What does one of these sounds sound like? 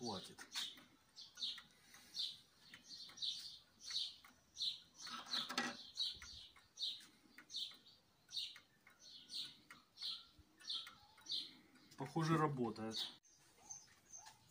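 A pendulum clock ticks steadily.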